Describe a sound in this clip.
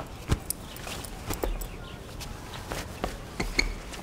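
Fabric rustles as a sheet is pulled.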